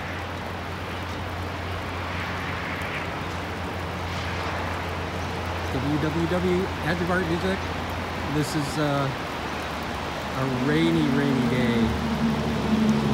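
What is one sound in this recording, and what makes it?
A distant waterfall rushes steadily.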